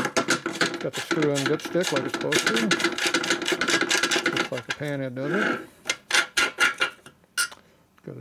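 A metal filler cap scrapes as it is twisted off a tank.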